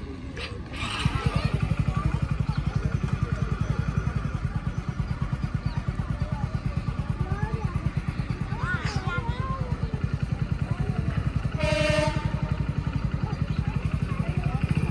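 A motorcycle engine idles with a steady throb.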